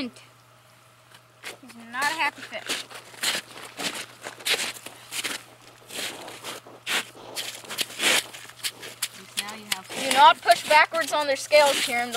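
Ice chips scrape and crack under a boy's hands.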